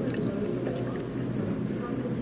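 A milky drink pours over ice in a tumbler.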